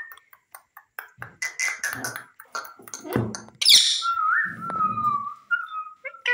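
A parrot's claws clatter against a wire cage as the bird climbs down.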